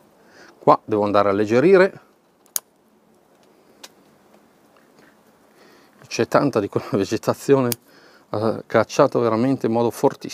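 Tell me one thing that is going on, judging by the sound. Small scissors snip at pine needles.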